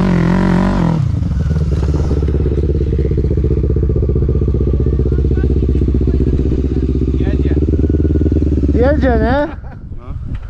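A quad bike engine idles with a steady low rumble.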